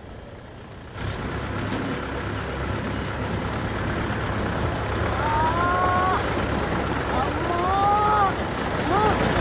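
A car engine rumbles as a vehicle drives closer.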